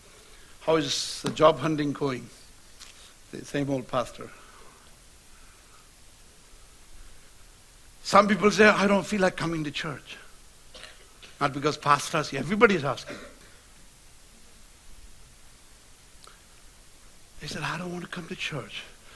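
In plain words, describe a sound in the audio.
A middle-aged man speaks with feeling into a microphone, in short bursts with long pauses.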